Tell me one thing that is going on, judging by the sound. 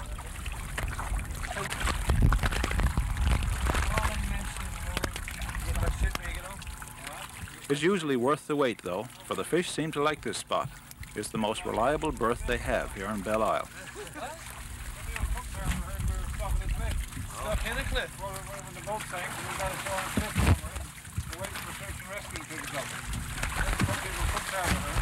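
Water splashes and sloshes as a fishing net is hauled in.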